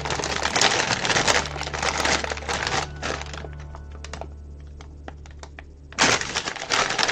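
A plastic bag crinkles and rustles as a hand rummages in it.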